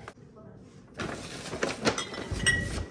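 A paper bag rustles as it is handled.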